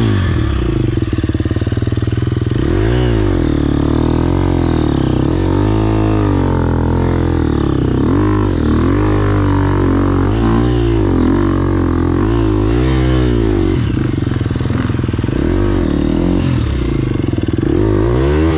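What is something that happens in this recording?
A dirt bike engine idles and revs up and down close by.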